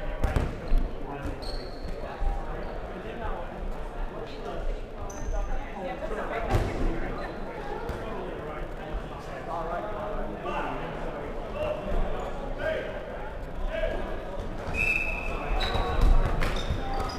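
A ball thuds on the floor and is struck.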